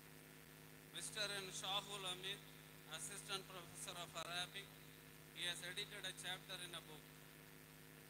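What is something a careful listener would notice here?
A man speaks into a microphone over a loudspeaker, announcing calmly.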